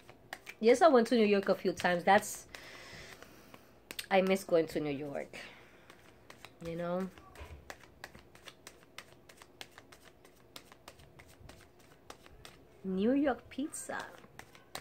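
Playing cards riffle and flick as a woman shuffles them.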